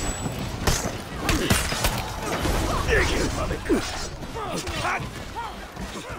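Swords clang and clash in a fierce battle.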